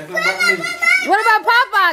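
A young child squeals excitedly.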